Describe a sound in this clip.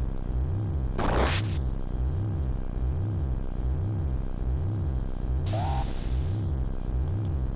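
A sharp sword swish cuts through twice.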